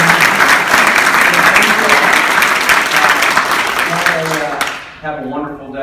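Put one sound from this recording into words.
A crowd applauds in a large room.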